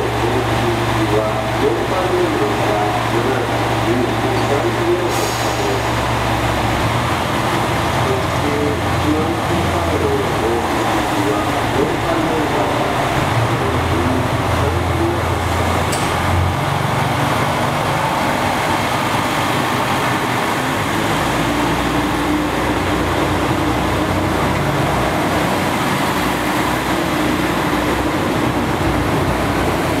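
A train engine hums and throbs nearby.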